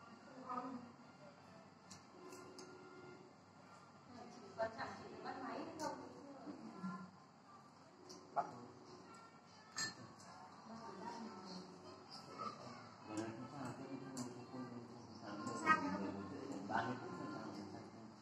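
Dishes and utensils clink now and then.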